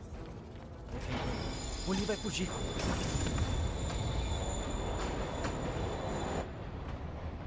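A subway train rumbles and screeches into a station.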